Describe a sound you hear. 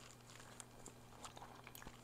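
A woman slurps noodles close to a microphone.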